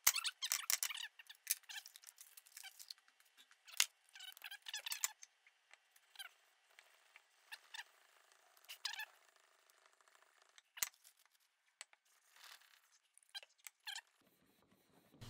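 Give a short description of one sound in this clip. Metal pieces clink and scrape against a hard surface.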